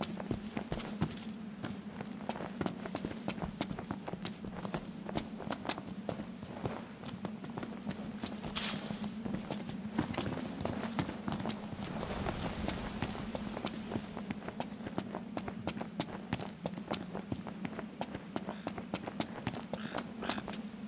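Footsteps crunch quickly on rocky ground.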